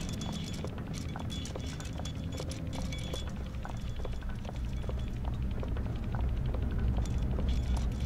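A clock ticks steadily.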